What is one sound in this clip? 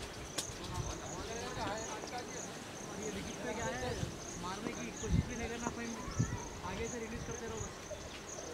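Young men call out to each other across an open field, far off.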